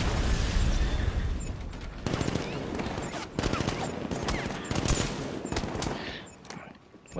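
Heavy punches and kicks land with loud thuds and crashes.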